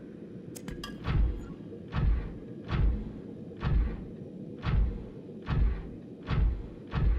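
A heavy mechanical suit thuds and whooshes in steady, evenly spaced steps.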